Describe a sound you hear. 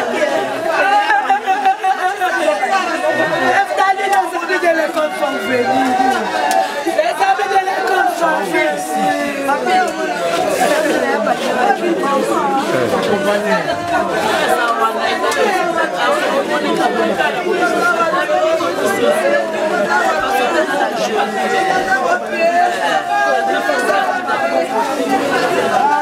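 A crowd of young people talk and shout over one another close by.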